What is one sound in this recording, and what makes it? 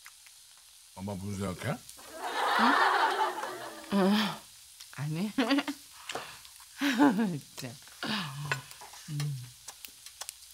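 An elderly woman talks in short, slow phrases.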